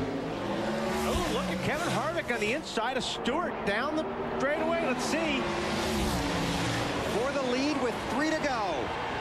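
Several race cars whine past, the pitch rising and falling as they go by.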